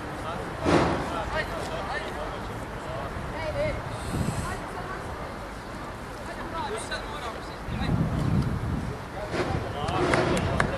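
Young men argue and shout outdoors.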